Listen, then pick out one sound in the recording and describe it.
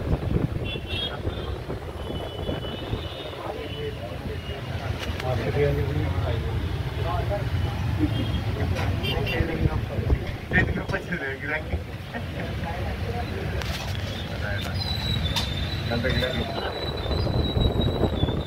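Men talk casually nearby.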